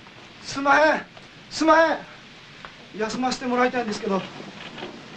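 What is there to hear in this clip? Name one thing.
A man calls out loudly in a drawn-out voice.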